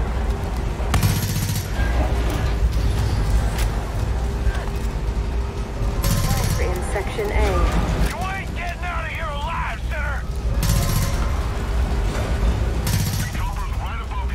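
A heavy gun fires rapid bursts close by.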